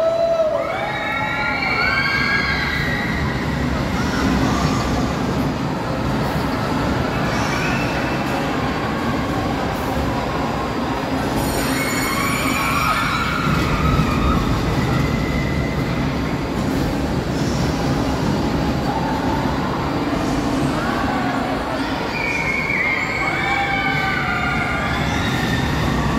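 Children scream and shout excitedly from a ride.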